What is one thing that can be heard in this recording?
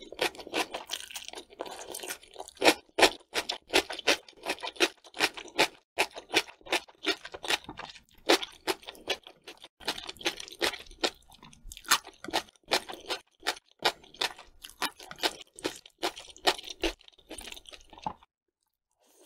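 A woman chews food wetly and crunchily close to a microphone.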